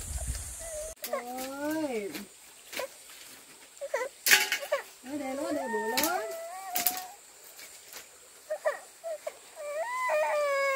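A toddler babbles and whines in a high voice close by.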